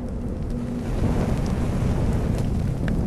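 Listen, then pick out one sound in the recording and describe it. Flames whoosh as they burst up.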